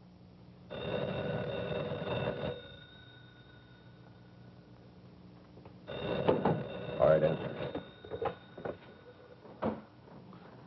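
A telephone rings twice.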